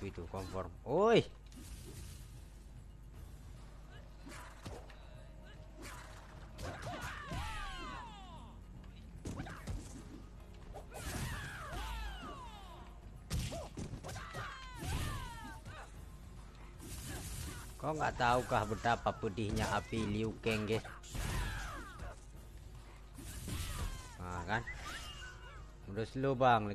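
Fighters' punches and kicks land with thuds.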